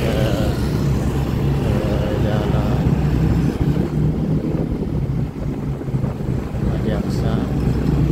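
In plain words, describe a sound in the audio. A motorbike engine drones past close by.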